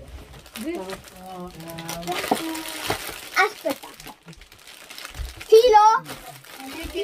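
Foil wrapping crinkles and tears.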